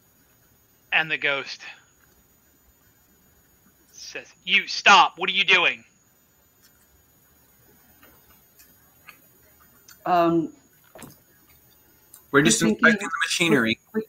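Several men talk in short bursts over an online call.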